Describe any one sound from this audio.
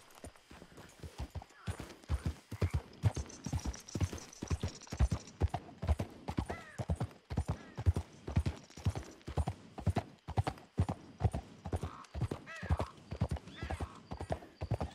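A horse's hooves clop steadily on the ground.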